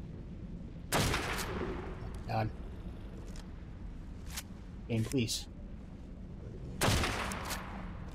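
A rifle fires with a sharp crack that echoes.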